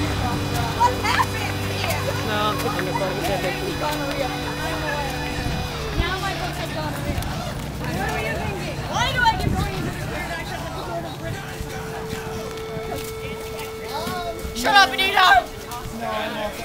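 Young men and women chatter and call out nearby outdoors.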